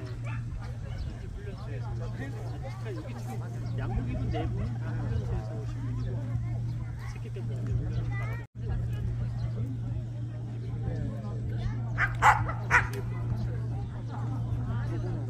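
A crowd of people chatter outdoors at a distance.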